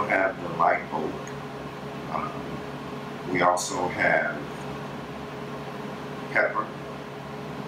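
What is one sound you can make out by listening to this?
A middle-aged man speaks calmly, in pauses.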